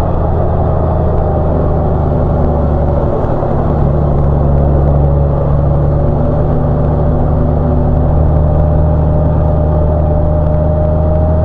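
A motorcycle engine hums steadily while riding along a winding road.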